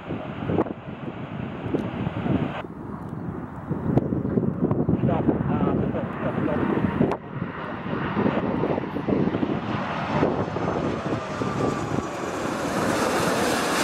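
A large jet airliner roars loudly overhead as it comes in low, its engines whining higher as it nears.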